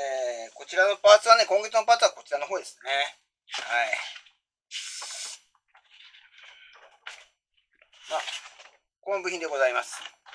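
Glossy magazine pages rustle and flap as they are turned.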